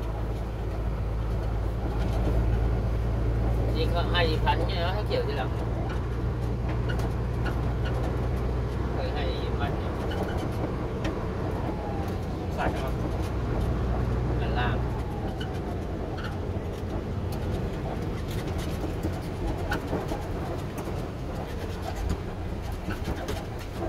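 A diesel engine rumbles steadily inside a truck cab.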